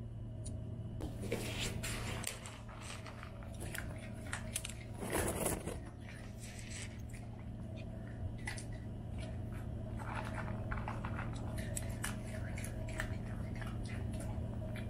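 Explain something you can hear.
A dog eats noisily from a bowl.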